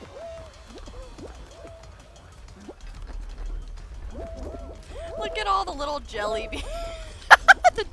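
Cartoon figures squeak and chirp as they run and tumble.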